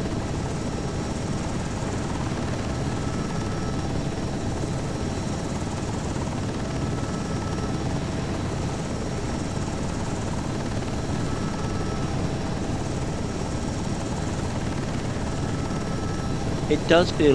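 A helicopter's engine whines and its rotor thumps steadily close by.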